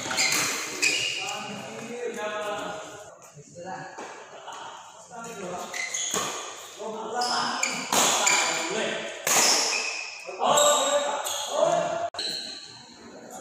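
Badminton rackets strike a shuttlecock in an echoing hall.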